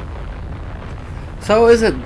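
Flames burst with a loud whoosh.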